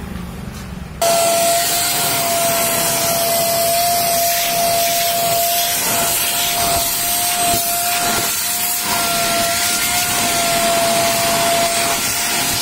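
A vacuum cleaner runs with a loud, steady whine.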